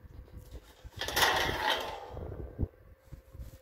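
A metal tray clatters as it is moved.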